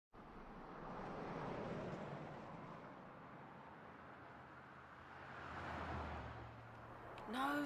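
Cars swish past close by on a road.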